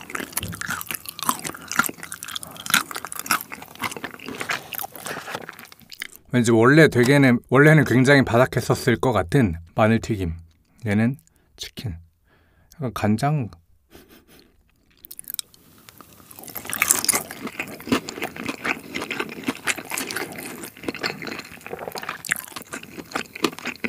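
A man chews crunchy food loudly and wetly, close to a microphone.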